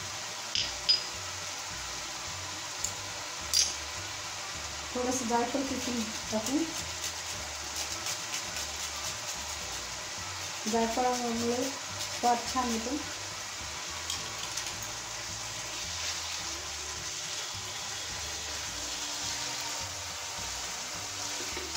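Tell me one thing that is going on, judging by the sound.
Food sizzles softly in a pan.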